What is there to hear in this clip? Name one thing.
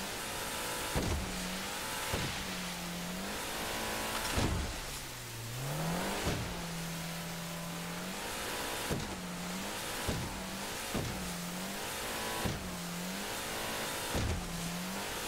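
A boat hull slams hard against waves.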